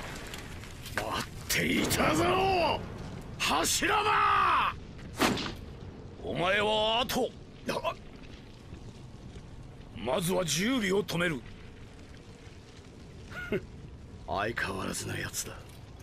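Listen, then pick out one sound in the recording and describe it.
A man speaks with intensity.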